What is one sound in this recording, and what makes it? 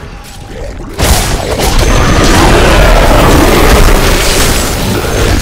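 Fiery blasts roar and crackle loudly.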